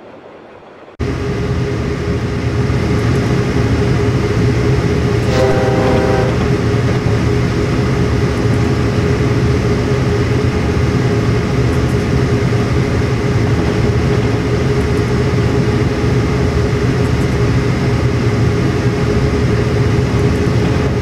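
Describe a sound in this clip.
A diesel locomotive engine rumbles deeply and steadily.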